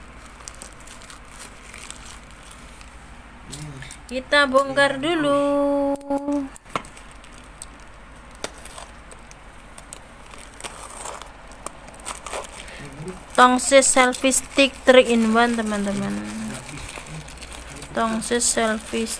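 Plastic packaging rustles and crinkles as hands handle it.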